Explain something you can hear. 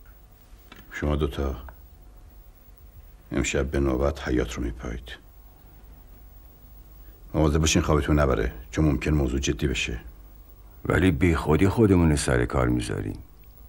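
A middle-aged man speaks in a low, serious voice nearby.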